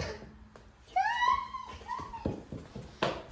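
A little girl squeals and chatters excitedly nearby.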